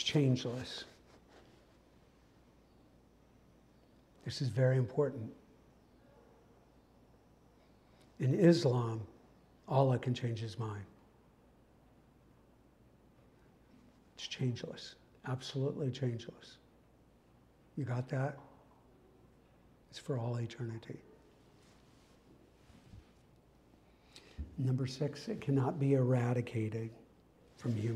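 A middle-aged man speaks slowly, in short bursts with long pauses.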